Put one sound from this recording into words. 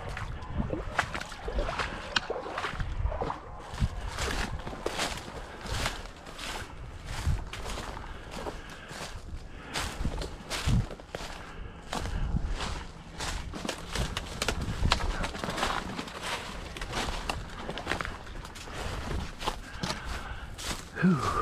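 Footsteps crunch through dry leaves and snap twigs close by.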